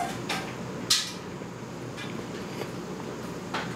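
A young woman slurps soup noisily from a spoon.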